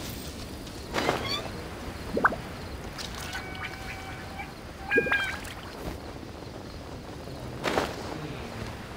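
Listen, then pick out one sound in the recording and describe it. Wings whoosh with bursts of rushing air during a glide.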